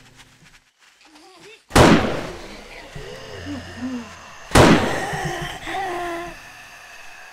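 Zombies groan and moan.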